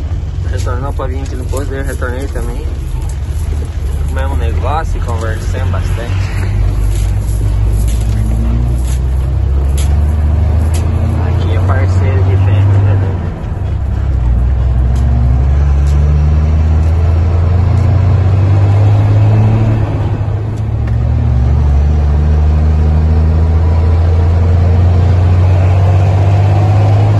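A vehicle engine drones low and steady.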